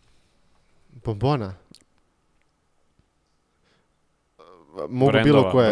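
A second young man answers with animation into a close microphone.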